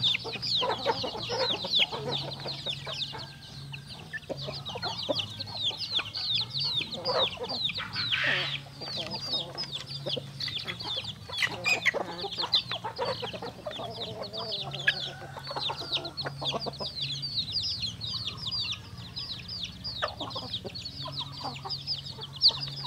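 Chicks cheep rapidly and constantly, close by.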